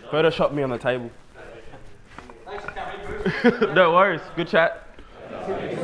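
Men talk and laugh loudly nearby.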